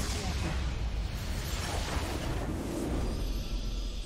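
Game sound effects burst loudly as a match ends.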